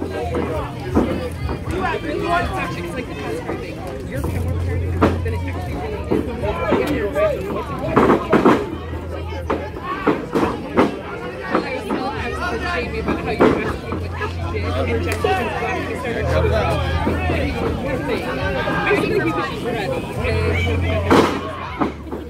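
Wrestlers' bodies thud onto a ring mat.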